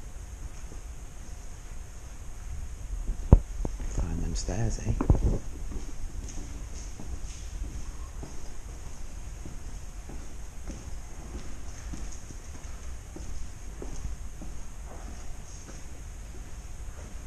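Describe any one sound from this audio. Footsteps crunch slowly on a gritty floor in a quiet, echoing space.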